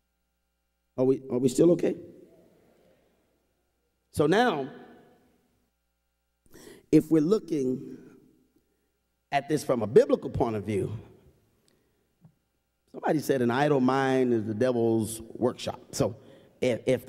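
A man preaches with emphasis through a microphone, in short bursts, in an echoing hall.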